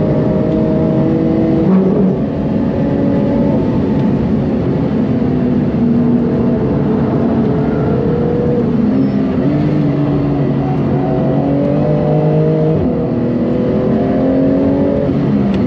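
A race car engine roars loudly, revving up and down through gear changes.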